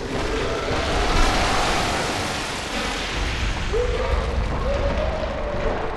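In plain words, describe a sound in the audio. Large feathered wings beat with a heavy whooshing rush.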